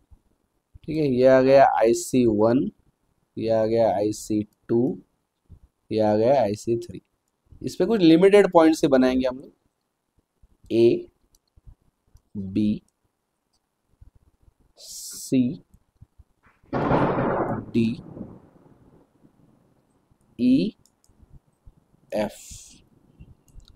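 A young man speaks calmly and clearly into a close microphone, in short phrases with pauses.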